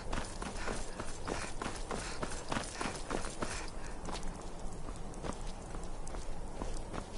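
Footsteps crunch steadily on loose stones.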